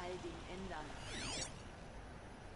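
A shimmering electronic sweep rings out briefly.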